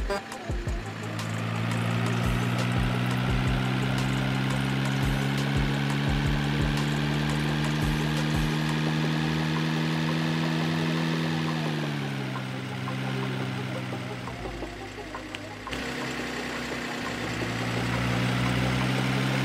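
A truck's diesel engine hums steadily, dropping in pitch as it slows and then rising again.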